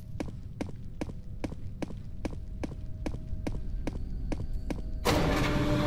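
Footsteps thud quickly and evenly on a hard floor.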